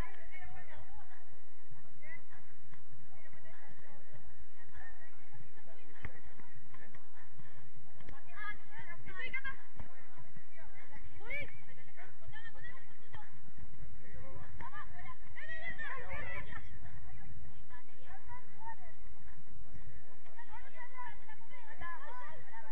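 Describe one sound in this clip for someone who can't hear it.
Young women shout and call out to each other outdoors, some way off.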